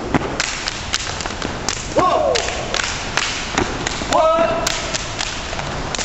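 Several young men clap their hands in a rhythm.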